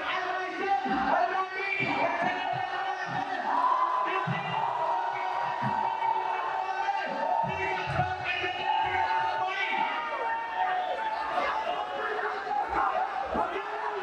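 A young man speaks steadily into a microphone in a large echoing hall.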